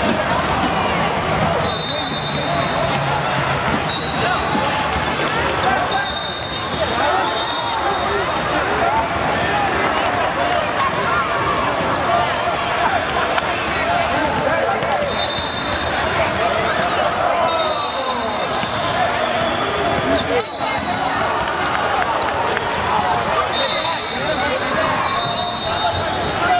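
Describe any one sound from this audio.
A crowd of spectators chatters and cheers in a large echoing gym.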